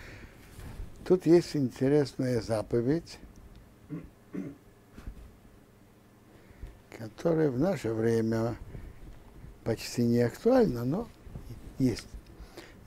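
An elderly man speaks calmly into a nearby microphone, pausing often.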